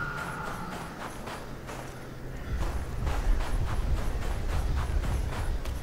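Footsteps crunch through deep snow at a steady pace.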